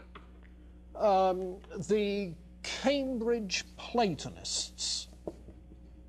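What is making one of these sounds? A man lectures aloud, slightly distant.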